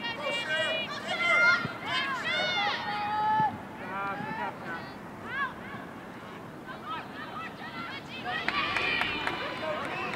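Young women shout to each other across an open outdoor field.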